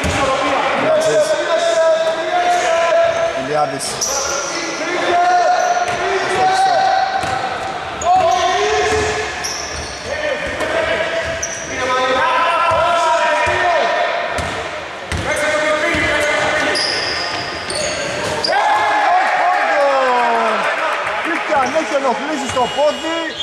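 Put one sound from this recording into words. Men shout to each other in a large echoing hall.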